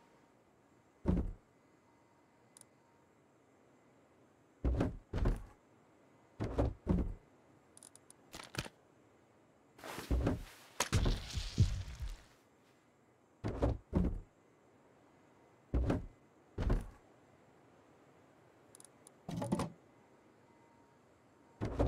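Short muffled thuds and rustles sound as items are shuffled around.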